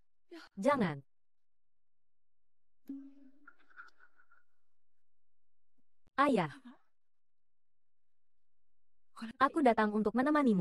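A young woman speaks tearfully, close by.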